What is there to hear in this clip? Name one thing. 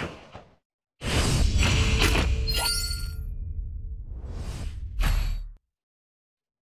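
A game jingle plays loudly for the defeat.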